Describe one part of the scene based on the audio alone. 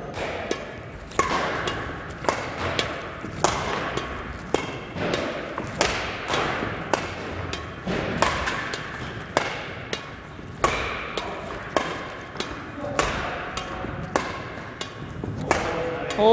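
Badminton rackets strike a shuttlecock in a quick rally, echoing in a large hall.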